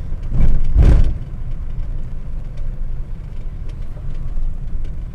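A car engine hums steadily close by.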